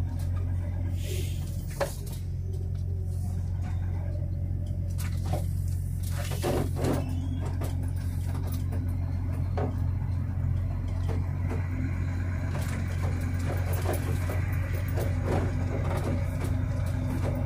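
A vehicle engine hums steadily close by.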